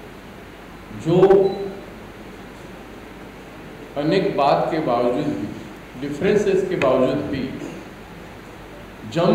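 A middle-aged man speaks into microphones in short bursts with pauses, in a calm, deliberate manner.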